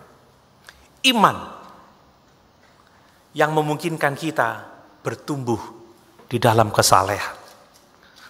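A man speaks with animation into a microphone, with echo in a large hall.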